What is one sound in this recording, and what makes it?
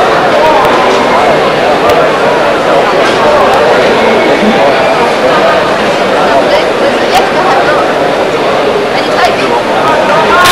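A crowd murmurs and chatters in a large echoing hall.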